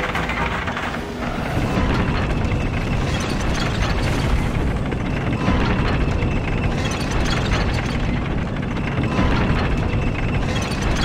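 A heavy wooden lift rumbles steadily as it rises.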